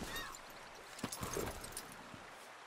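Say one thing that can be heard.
A horse's hooves clop on stony ground.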